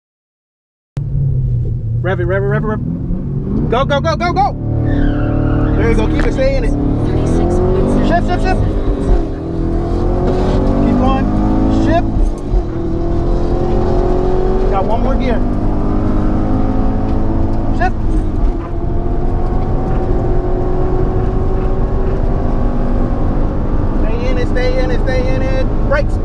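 A powerful car engine roars loudly, rising in pitch as the car accelerates hard.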